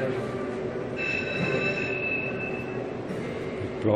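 A slot machine rings out a chiming win tune.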